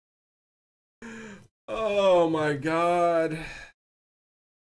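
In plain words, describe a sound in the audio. A man speaks briefly into a microphone with animation.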